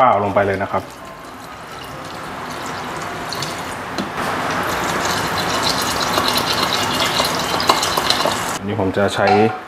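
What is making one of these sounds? Water pours from a bottle into a pot of rice.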